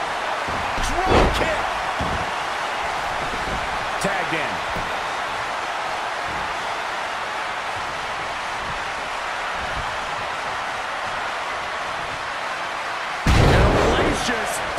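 Heavy bodies slam onto a wrestling mat with loud thuds.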